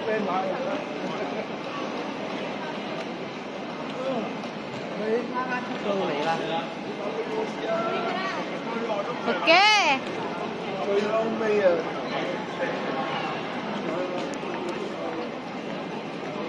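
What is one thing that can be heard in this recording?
Luggage trolleys roll and rattle along.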